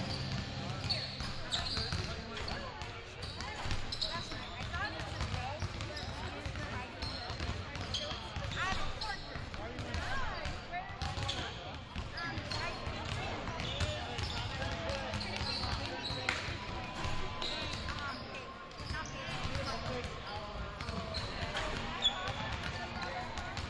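Basketballs bounce on a wooden court in a large echoing gym.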